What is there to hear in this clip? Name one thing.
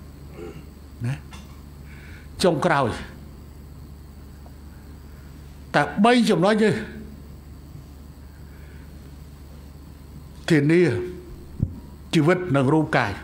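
An older man speaks with emphasis through a microphone, in bursts with pauses.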